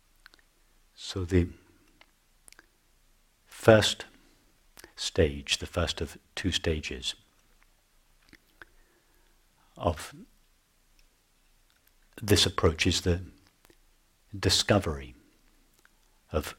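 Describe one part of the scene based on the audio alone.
A middle-aged man speaks calmly and slowly close to a microphone, with long pauses.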